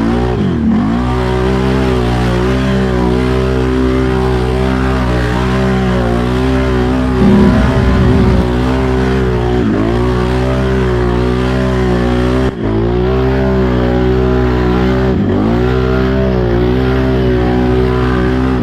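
An off-road quad engine roars up close, revving up and down.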